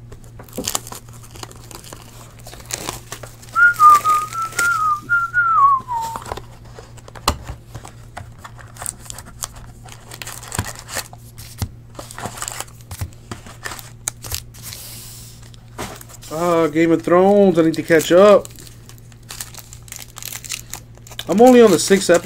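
Plastic wrapping crinkles and rustles between hands.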